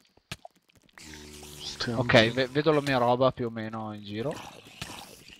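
A zombie groans low and drawn out.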